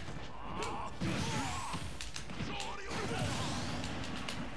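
A burst of whooshing, sparkling game effects sounds out.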